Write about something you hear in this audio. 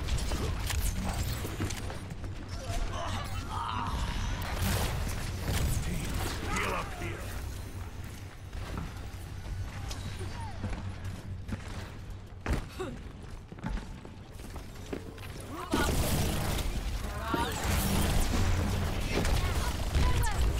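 Video game gunfire crackles in bursts.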